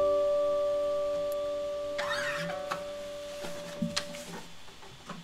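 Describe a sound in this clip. An electric guitar chord rings out and slowly fades.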